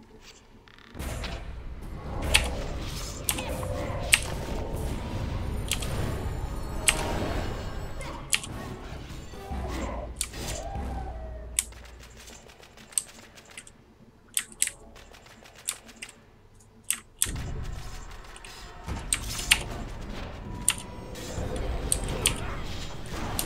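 Magic spells whoosh, crackle and boom during a fight.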